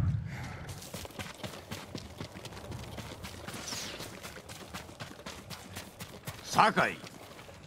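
Footsteps run quickly over the ground.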